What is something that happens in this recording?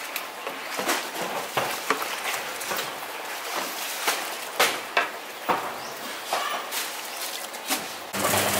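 A paddle knocks against the rim of a metal pot.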